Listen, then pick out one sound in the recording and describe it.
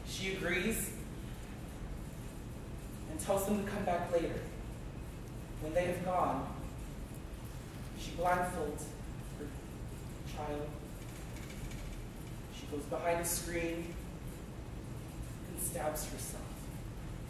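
A man speaks slowly with long pauses, heard from a distance in a large echoing hall.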